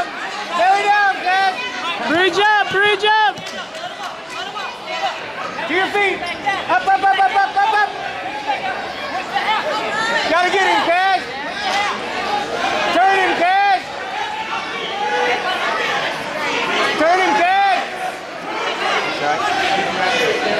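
A man shouts encouragement loudly nearby in a large echoing hall.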